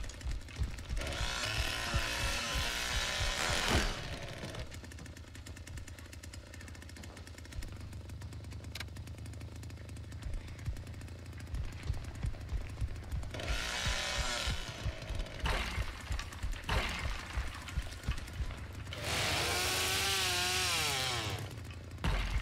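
A chainsaw revs loudly in bursts.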